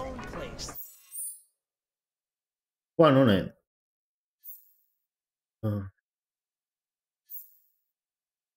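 A soft electronic chime beeps.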